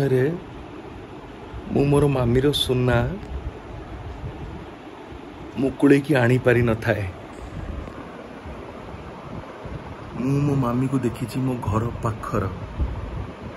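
A man speaks casually in short bursts close to a phone microphone.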